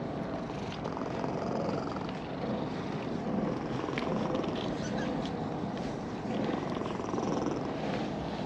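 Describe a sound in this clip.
A hand strokes a cat's fur with a soft rustle.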